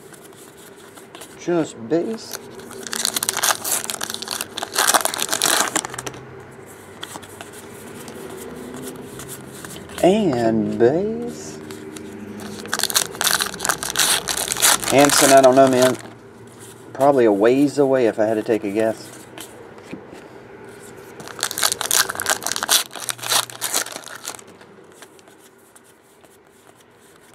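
Trading cards shuffle and flick in hands.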